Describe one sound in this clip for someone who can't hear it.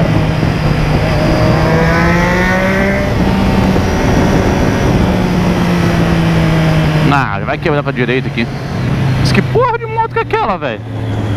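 A motorcycle engine hums and revs up as it rides along.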